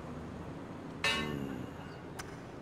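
A golf ball thuds onto a target board.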